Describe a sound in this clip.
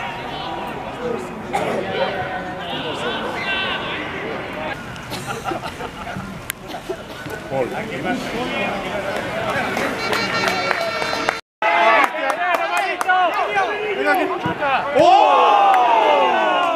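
Young men shout to each other across an outdoor pitch.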